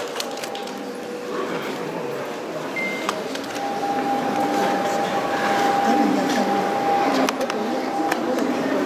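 A small string ensemble of violins and a cello plays a melody.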